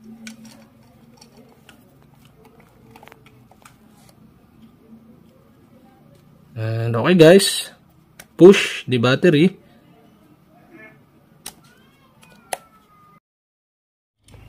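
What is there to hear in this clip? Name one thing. A small plastic latch clicks open and shut.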